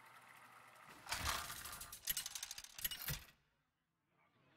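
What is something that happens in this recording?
A game plays clattering, rolling sounds as a list of names spins.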